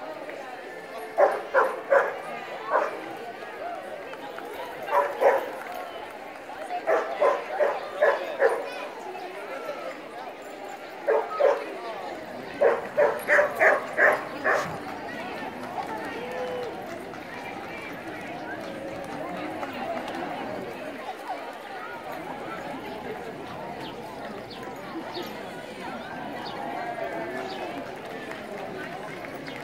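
A crowd of onlookers chatters quietly outdoors.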